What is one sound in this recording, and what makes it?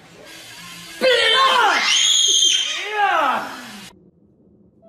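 A woman screams loudly.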